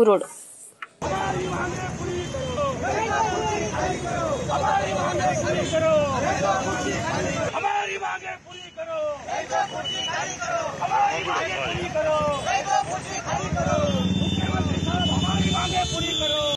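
A crowd of men and women chants and clamours outdoors.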